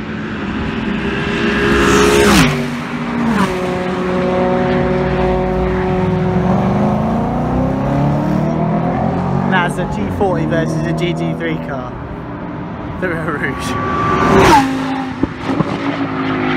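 Racing car engines whine and rev through the gears in the distance.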